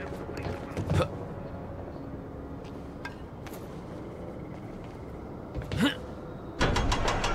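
Thuds and knocks sound as a man climbs and lands.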